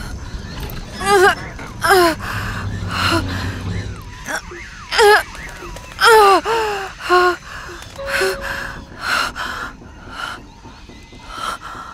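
A young woman grunts and gasps with strain, close by.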